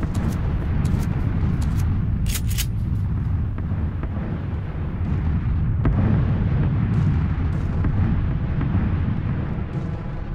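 Footsteps thud steadily across a floor.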